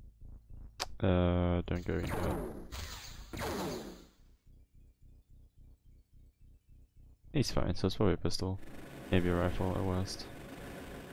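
A young man talks with animation into a headset microphone.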